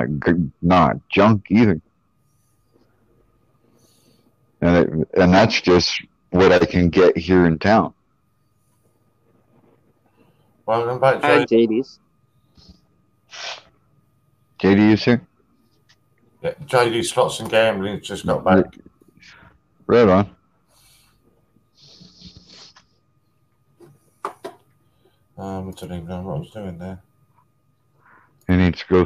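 A middle-aged man talks casually over an online call.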